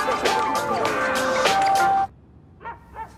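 A crowd of children cheers excitedly.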